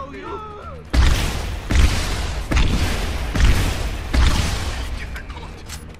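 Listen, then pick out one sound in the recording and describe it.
Gunshots boom loudly in heavy bursts with echoing tails.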